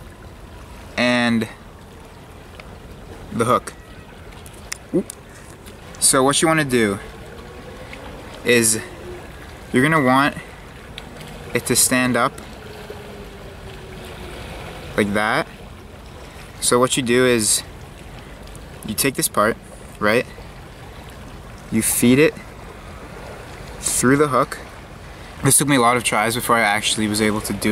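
A young man talks calmly and close up, in short bursts.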